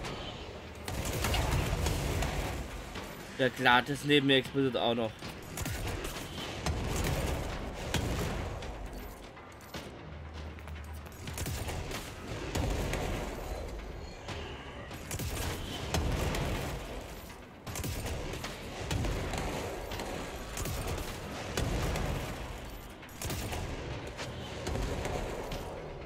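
Explosions boom and debris crashes.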